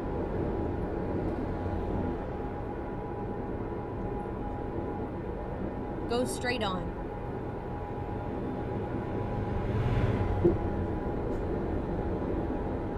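Tyres roll on a highway.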